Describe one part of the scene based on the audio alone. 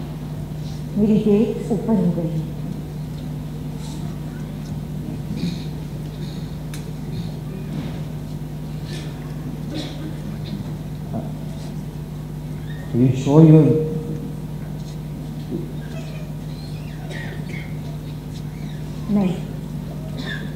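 A man speaks with feeling on a stage.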